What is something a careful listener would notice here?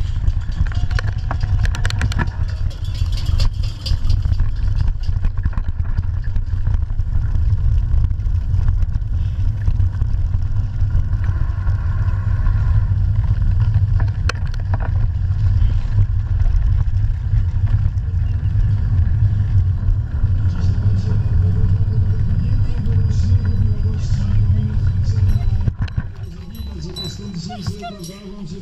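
Bicycle tyres roll over dirt and pavement.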